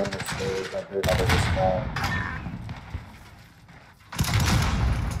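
A rifle fires with a loud, echoing boom.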